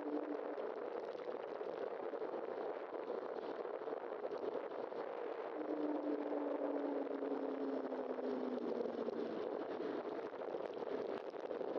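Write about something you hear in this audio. Wind rushes steadily past a moving vehicle.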